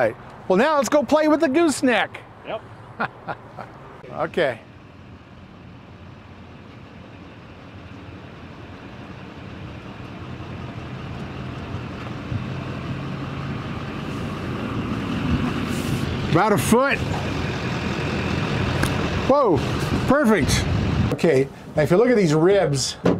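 An older man talks calmly outdoors.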